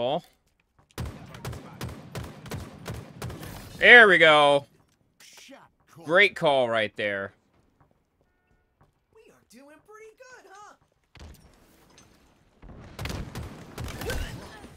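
A rifle fires quick bursts of shots.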